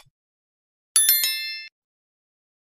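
A small bell chimes briefly.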